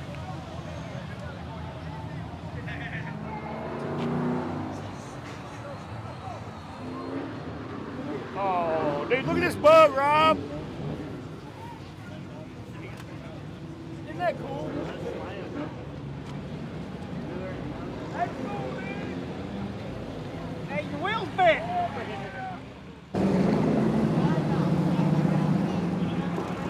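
People chat in a crowd outdoors.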